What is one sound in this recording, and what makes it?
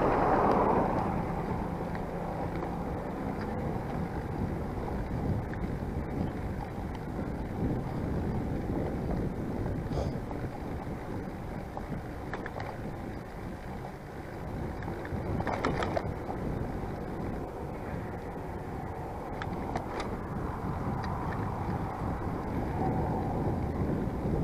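Bicycle tyres roll over pavement with a low rumble.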